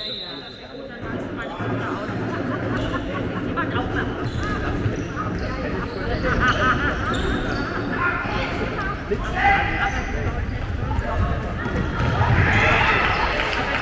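A crowd cheers and shouts in an echoing hall.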